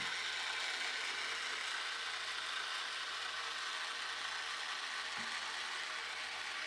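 A clockwork wind-up toy boat whirs as it moves across water.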